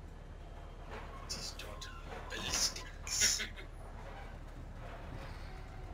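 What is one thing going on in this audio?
A mine cart rolls and rattles along rails.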